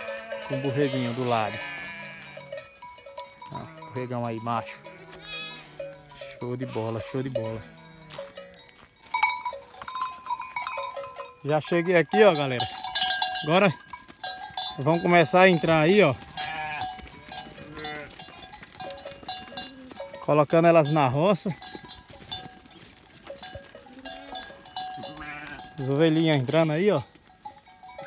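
Sheep bleat loudly and repeatedly nearby.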